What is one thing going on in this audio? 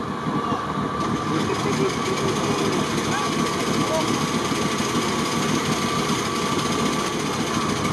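An off-road vehicle's engine runs and revs.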